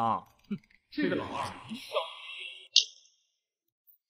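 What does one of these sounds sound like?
A young man speaks teasingly and close.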